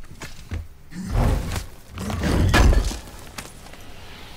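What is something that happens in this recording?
A heavy stone lid grinds open with deep thuds.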